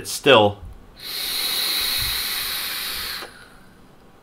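An electronic cigarette hisses steadily as a man draws on it.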